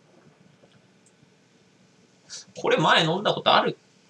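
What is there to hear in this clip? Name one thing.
Liquid pours from a can into a glass.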